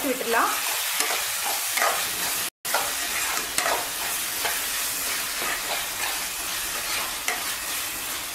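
A spatula scrapes and stirs food in a metal pan.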